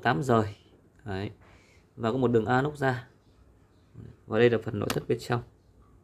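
A cable plug clicks as it is pulled from a socket.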